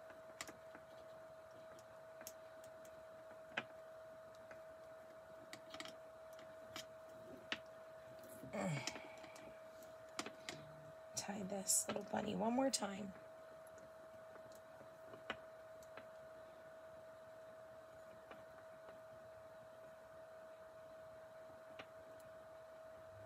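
Wooden beads click softly against each other as they are threaded onto a string.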